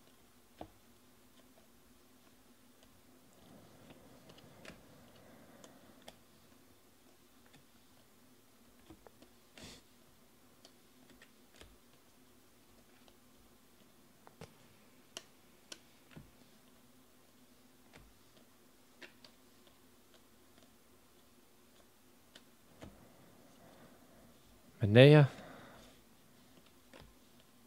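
Trading cards slide and flick against each other as they are shuffled by hand.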